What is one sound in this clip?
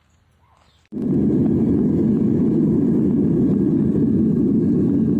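A furnace roars loudly and steadily.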